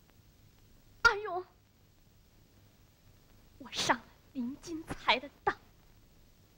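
A boy speaks with feeling, close by.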